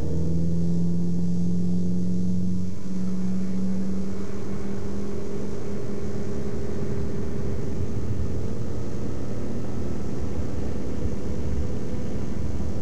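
Water sprays and hisses under the plane's floats.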